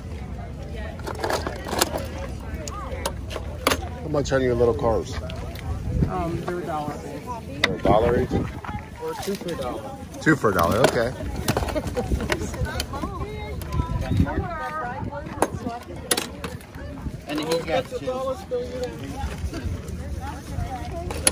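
Small metal toy cars clink and rattle against each other.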